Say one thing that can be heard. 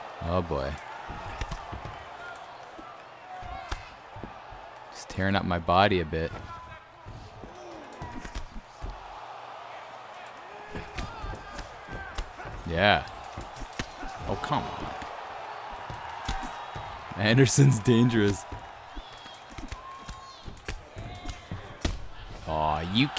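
Punches and kicks land with dull thuds.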